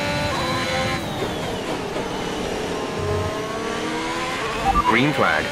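A racing car engine drops in pitch as the car brakes into a corner.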